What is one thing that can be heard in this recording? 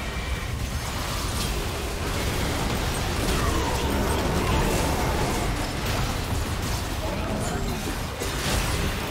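Magic spells whoosh and crackle in a video game battle.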